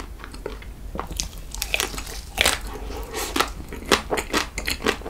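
A young man bites into something crunchy close to a microphone.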